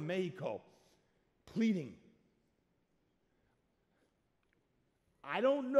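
A man speaks loudly and with animation into a microphone, in short bursts.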